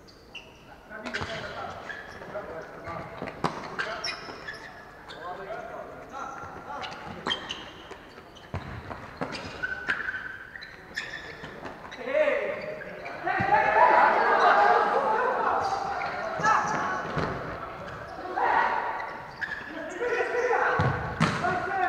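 Several men shout and call out to one another across the echoing hall.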